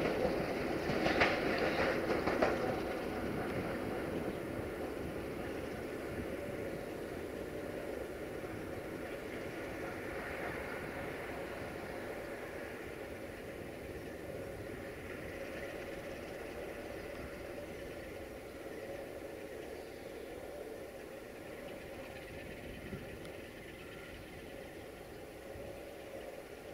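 A diesel locomotive rumbles as it pulls away and slowly fades into the distance.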